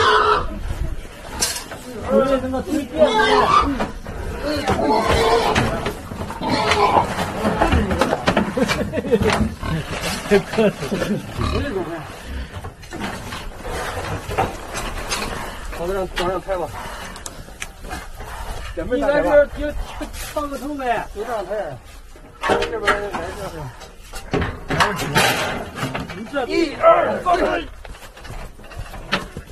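A metal cage rattles and clanks as it is moved.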